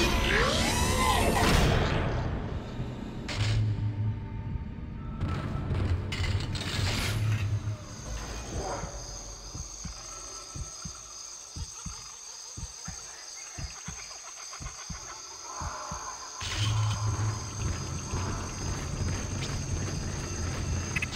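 Heavy footsteps clank on a metal floor.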